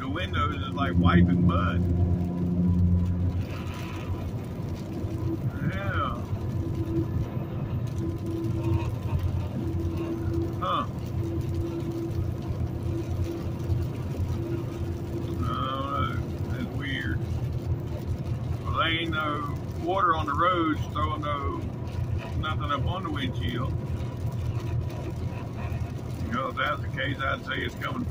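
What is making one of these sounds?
Tyres hum on a highway.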